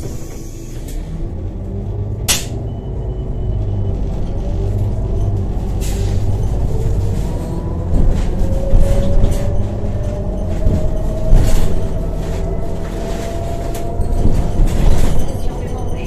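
A vehicle engine grows louder and rises in pitch as the vehicle pulls away and drives on.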